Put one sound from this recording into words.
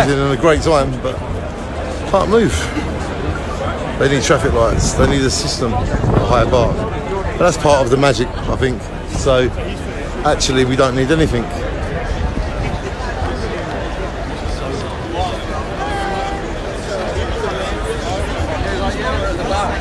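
A large outdoor crowd murmurs and chatters all around.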